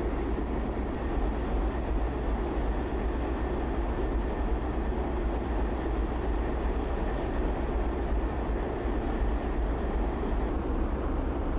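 Water churns and splashes behind a tugboat's propellers.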